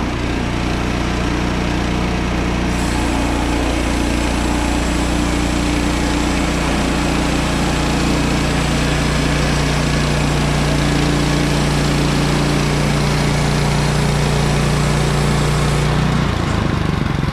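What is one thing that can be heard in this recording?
A bandsaw blade cuts through a log.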